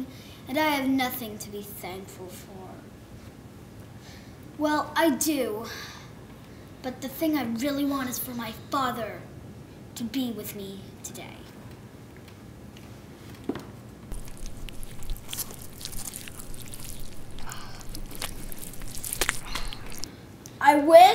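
A child speaks expressively, nearby.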